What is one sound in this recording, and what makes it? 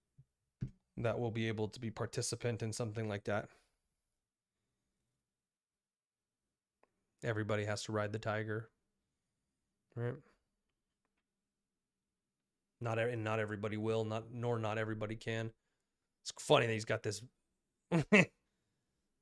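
A young man speaks calmly into a close microphone, pausing between phrases.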